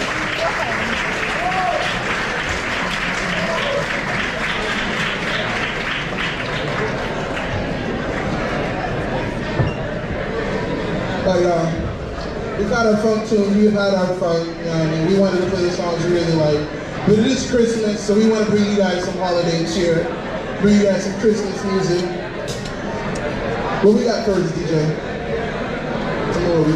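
A band plays loud music.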